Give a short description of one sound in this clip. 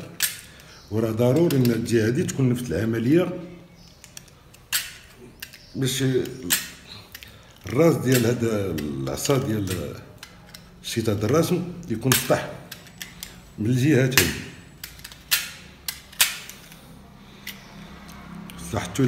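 A knife blade scrapes against a small piece of metal in short strokes.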